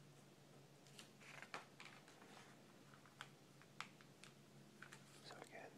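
A magazine page flips over with a papery swish.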